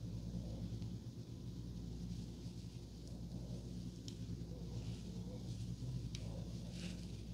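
Hair rustles softly as fingers twist and pin it.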